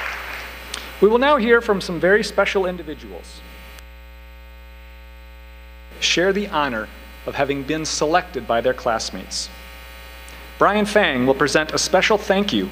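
A man speaks calmly through a microphone in a large hall, with pauses.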